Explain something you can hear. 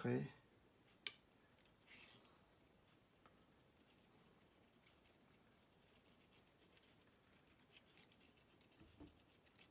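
A cotton swab scrubs softly over a circuit board.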